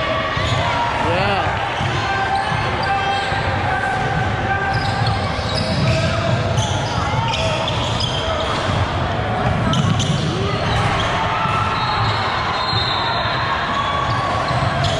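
Many voices of young players and onlookers chatter and call out in the echoing hall.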